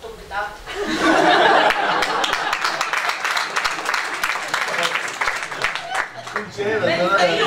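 An audience laughs and claps.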